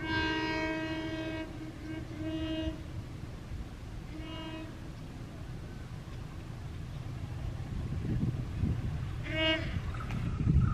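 A diesel locomotive sounds its air horn in several blasts.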